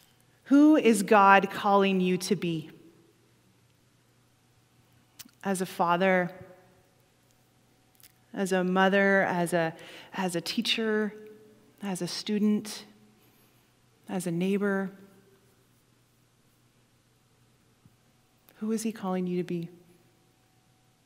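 A middle-aged woman speaks calmly through a microphone, pausing between phrases.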